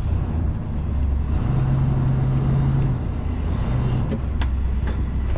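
A vehicle engine rumbles low and steady while driving.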